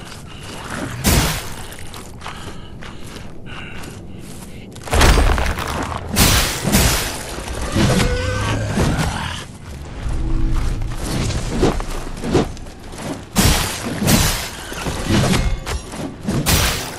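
A heavy sword swings and strikes enemies with loud impacts.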